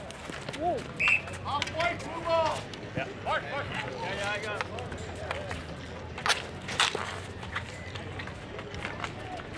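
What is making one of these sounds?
Hockey sticks clack against a ball on asphalt.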